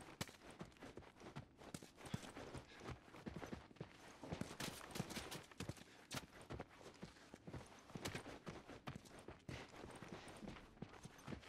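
Footsteps walk across a floor.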